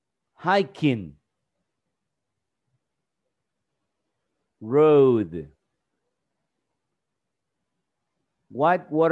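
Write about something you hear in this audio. A man reads out single words slowly over an online call, with pauses between them.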